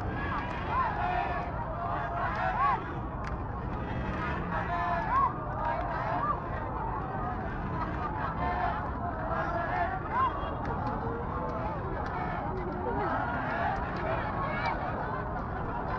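A large crowd of young people cheers and shouts outdoors.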